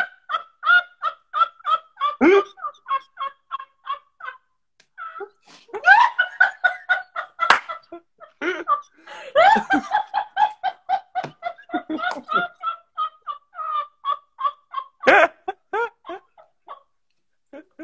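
A young woman laughs helplessly over an online call.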